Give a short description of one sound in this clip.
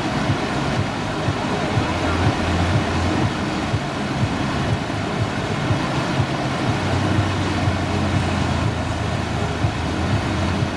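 Rushing river water roars steadily outdoors.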